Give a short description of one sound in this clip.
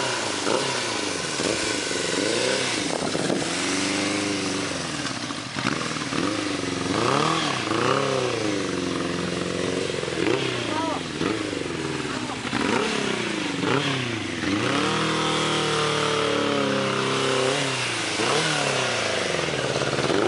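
A motorcycle engine revs up and down again and again, close by.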